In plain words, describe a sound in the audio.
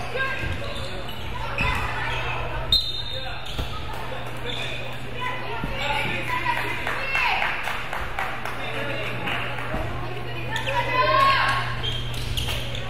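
Young boys shout and call out to each other in a large echoing gym.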